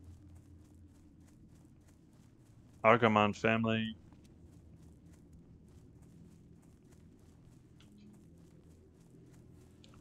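Footsteps patter softly on grass.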